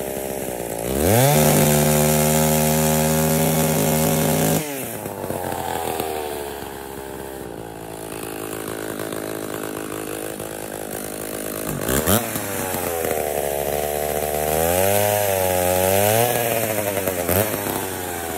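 A chainsaw revs up loudly as it cuts wood.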